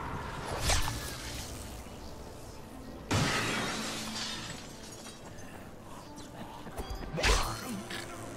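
Heavy blows thud as a blade strikes.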